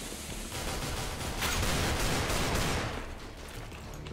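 A smoke grenade hisses loudly.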